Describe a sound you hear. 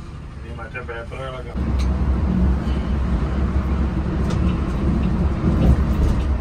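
A heavy vehicle's engine rumbles steadily, heard from inside the cab.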